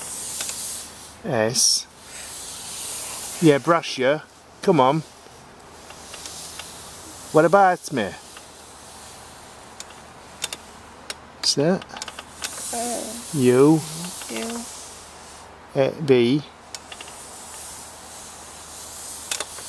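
A wooden pointer slides and scrapes softly across a board.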